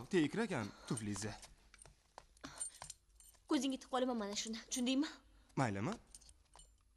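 A young woman speaks sharply and with animation close by.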